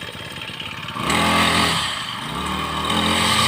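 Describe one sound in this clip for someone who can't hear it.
A trimmer engine revs up loudly.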